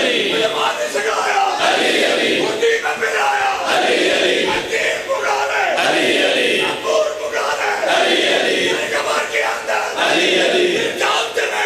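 A crowd beats their chests in a steady rhythm.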